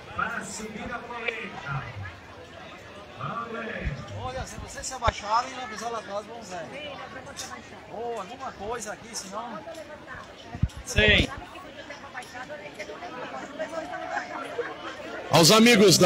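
A crowd of men and women chatter loudly outdoors.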